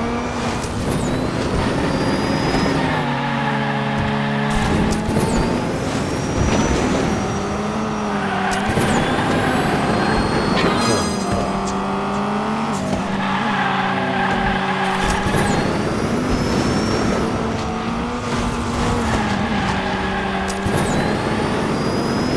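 Tyres screech as a small car drifts through bends.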